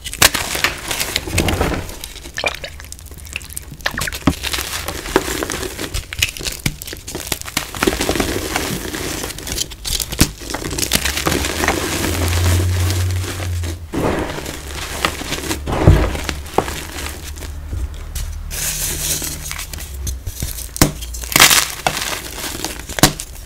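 Hands crumble dry chalky blocks with soft crunching and crackling.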